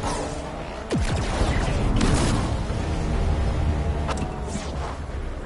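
A car thuds and crashes into obstacles.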